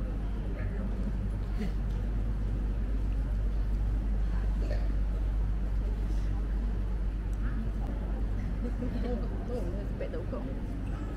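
Several women murmur and talk softly nearby.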